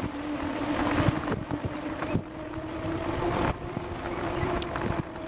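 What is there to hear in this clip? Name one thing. Wheels roll and rattle over a paved path.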